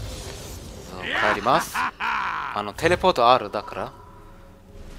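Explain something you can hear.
Weapons clash and magic effects burst in a quick flurry.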